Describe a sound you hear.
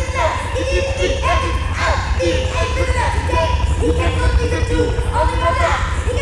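A woman sings in high, swooping wails through a microphone.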